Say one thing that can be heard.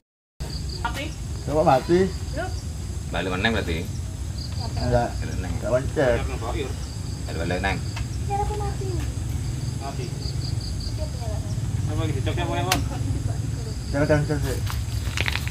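A young man talks casually nearby.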